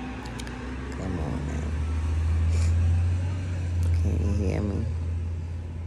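A woman speaks softly and sleepily, close to a phone's microphone.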